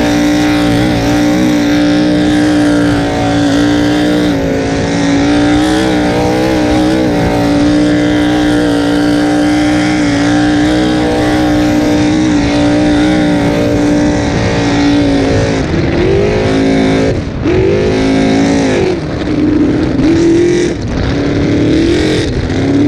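Water rushes and sprays against a speeding boat's hull.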